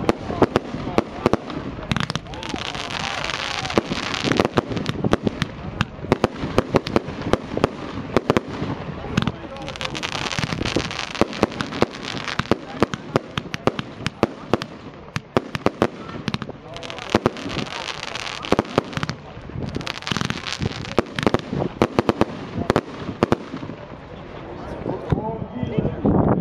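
Fireworks pop and bang rapidly overhead.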